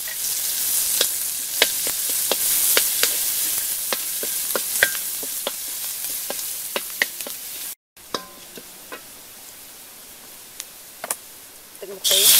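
Food sizzles loudly in a hot wok.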